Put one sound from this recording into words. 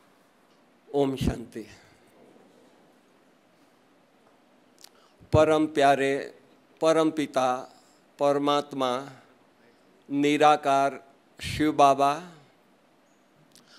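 An elderly man speaks slowly and deliberately into a microphone, with long pauses.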